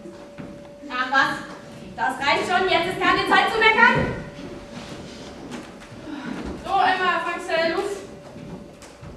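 A young woman sings.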